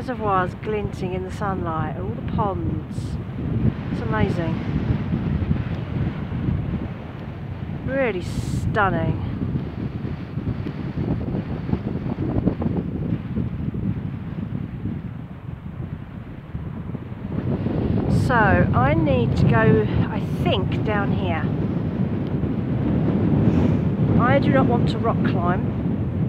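Wind gusts and buffets across open ground.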